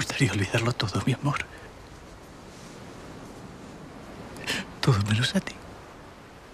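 A man speaks softly and emotionally up close.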